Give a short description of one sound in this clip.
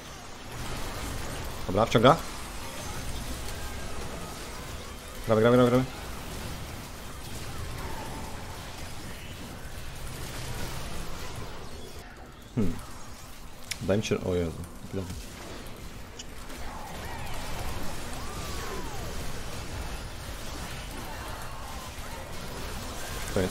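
Fast game battle effects whoosh and clash throughout.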